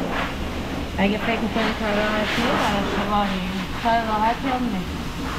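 A woman talks cheerfully close by.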